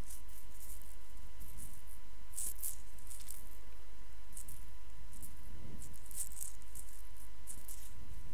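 A man speaks quietly and calmly close to a microphone.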